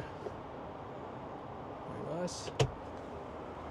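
A console lid clicks open and shut.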